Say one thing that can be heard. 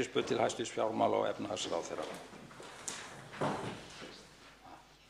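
An elderly man speaks briefly over a microphone in a large hall.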